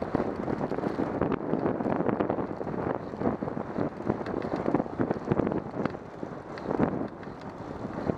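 Wind buffets and rumbles against the microphone.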